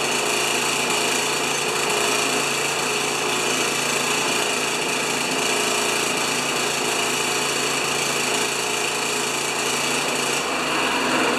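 A lawn mower engine runs at a steady, loud idle, echoing in a closed room.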